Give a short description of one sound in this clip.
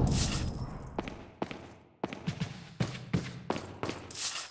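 Footsteps tap on a hard floor at an even pace.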